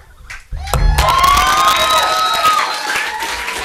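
A double bass sounds a sustained bowed chord that rings out.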